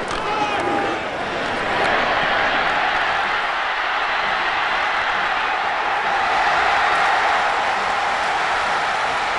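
A large stadium crowd cheers and roars loudly, swelling as the play goes on.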